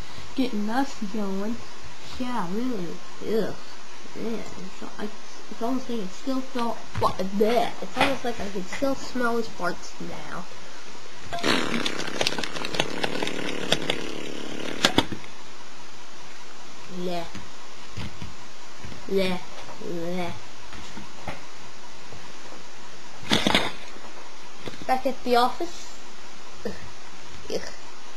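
Plastic toy figures knock and clack against a tabletop.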